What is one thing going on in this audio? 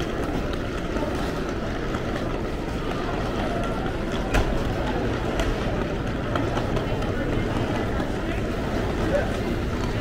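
Footsteps tap on a hard floor.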